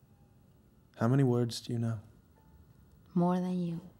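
A young man speaks in a low, quiet voice close by.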